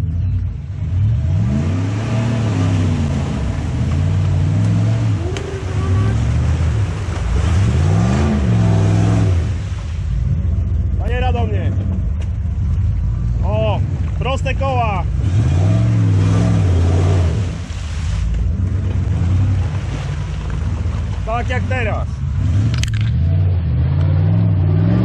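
Tyres churn and splash through deep mud and water.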